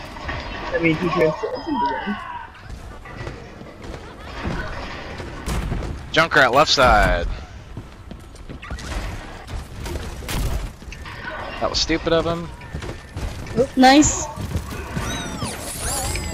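Rapid machine-gun fire rattles.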